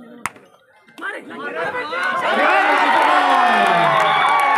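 A crowd of young men shouts and cheers loudly outdoors.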